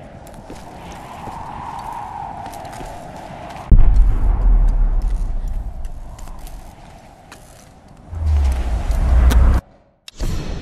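A torch flame crackles and roars.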